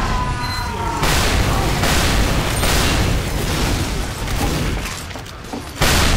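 A flamethrower roars in bursts.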